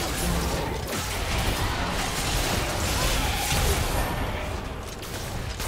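Magic spells blast and crackle in a fierce fight.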